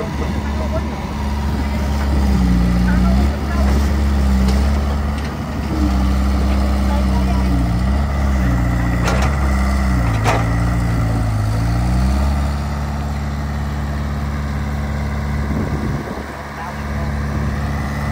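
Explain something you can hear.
A diesel excavator engine rumbles and rises and falls as the hydraulics work.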